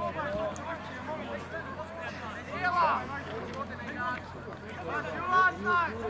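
A crowd of men and women chatters and shouts outdoors at a distance.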